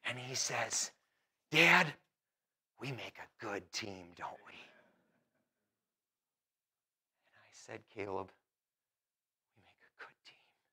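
A middle-aged man speaks with animation into a microphone, with pauses between phrases.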